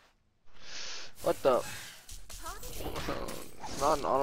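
A magical blast bursts with a loud crackling whoosh.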